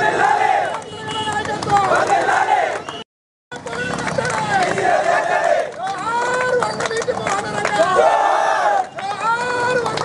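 Men clap their hands in rhythm.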